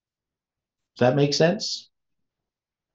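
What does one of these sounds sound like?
An elderly man speaks briefly and calmly into a microphone.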